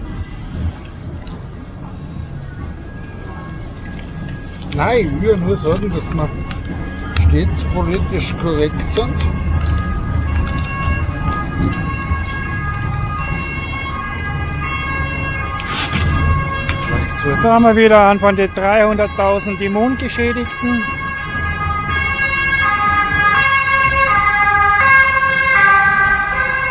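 Traffic hums on a nearby street.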